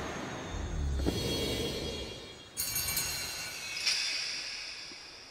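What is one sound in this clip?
A shimmering magical chime rings out.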